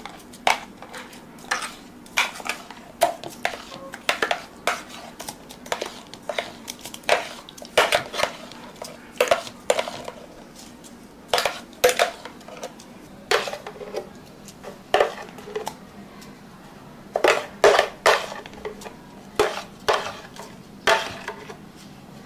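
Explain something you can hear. A spoon knocks and scrapes against a plastic blender jug.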